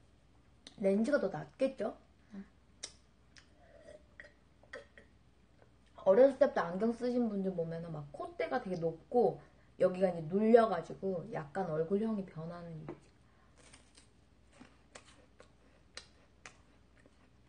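A young woman chews and bites food with soft crunches.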